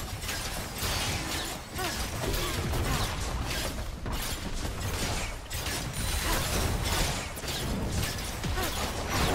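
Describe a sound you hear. Magic blasts, zaps and impacts crackle in rapid bursts during a fight.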